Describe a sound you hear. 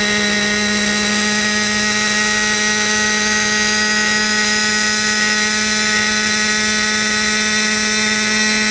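Model helicopter rotor blades whir steadily.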